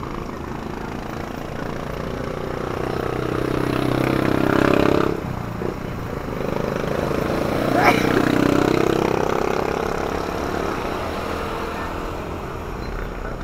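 A vehicle's engine and tyres rumble steadily.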